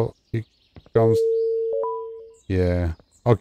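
A short electronic tone sounds.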